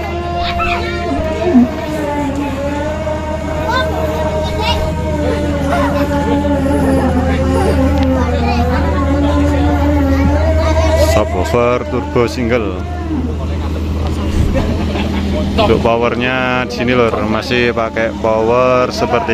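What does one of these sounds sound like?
Loud music with a heavy, booming bass plays through huge loudspeakers outdoors.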